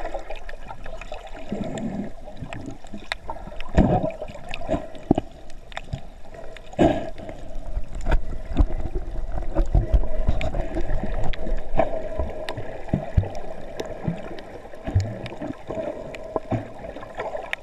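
Muffled underwater sloshing and bubbling fills the recording.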